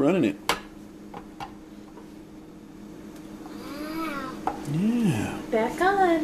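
A plastic lid clatters and clicks onto a food processor.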